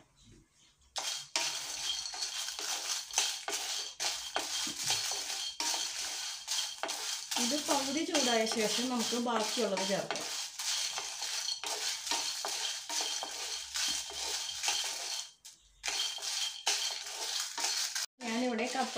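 Food sizzles in hot oil in a pan.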